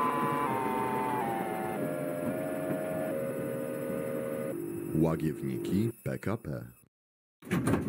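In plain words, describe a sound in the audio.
A tram's electric motor whines, stepping down in pitch as it slows.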